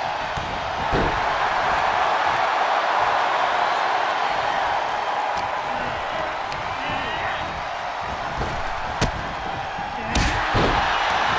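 Bodies thud heavily onto a wrestling ring mat.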